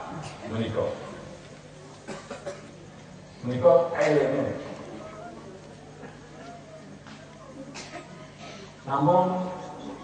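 A middle-aged man speaks through a microphone in an echoing hall, in bursts with pauses.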